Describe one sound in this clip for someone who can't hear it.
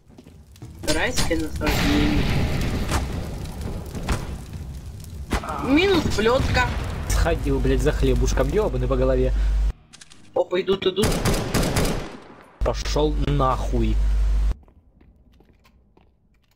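Rifle shots crack.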